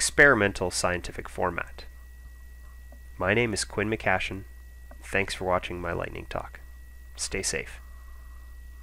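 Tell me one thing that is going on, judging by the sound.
A man speaks calmly and clearly into a microphone, with short pauses.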